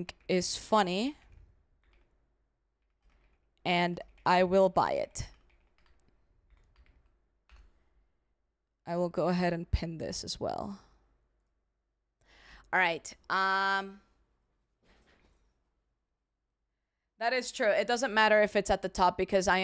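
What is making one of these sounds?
A young woman talks casually and close into a microphone, in short bursts with pauses.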